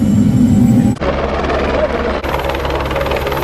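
A helicopter whirs overhead outdoors.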